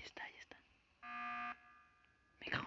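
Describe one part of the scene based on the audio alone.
A video game alarm blares briefly.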